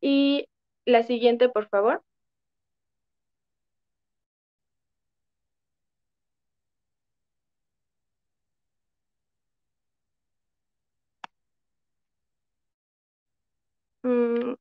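A young woman speaks calmly into a microphone over an online call.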